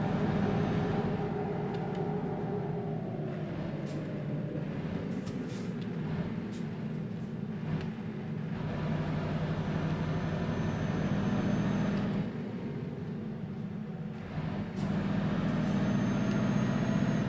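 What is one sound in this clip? A truck engine drones steadily, swelling and easing as it drives.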